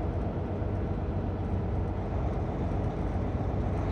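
A car passes by in the other direction.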